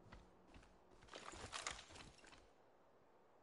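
A gun clatters as it is swapped.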